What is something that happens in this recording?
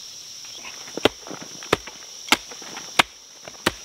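A small shovel digs and thuds into loose earth.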